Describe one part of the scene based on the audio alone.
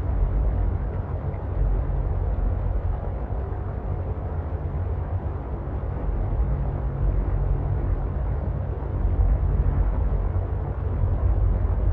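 A small submersible's motor hums low as it cruises underwater.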